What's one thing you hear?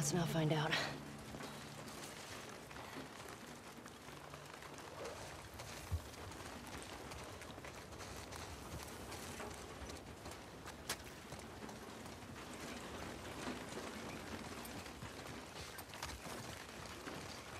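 Footsteps patter on wet ground.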